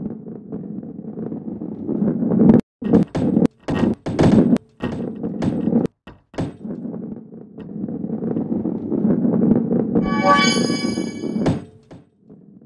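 A ball rolls with a low rumble along a wooden track.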